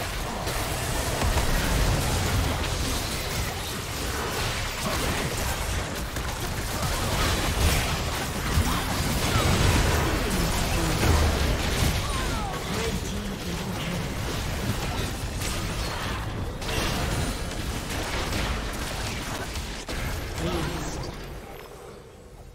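Game spell effects crash, zap and whoosh in a busy fight.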